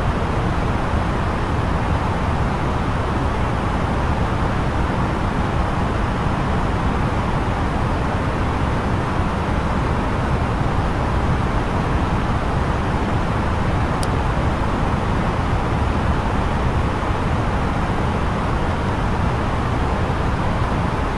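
An airliner's engines and air flow roar steadily.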